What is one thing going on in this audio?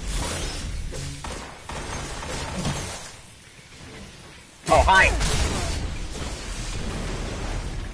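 A sword slashes with a whooshing swipe.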